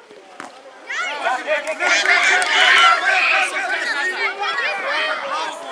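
Adult spectators shout and cheer outdoors.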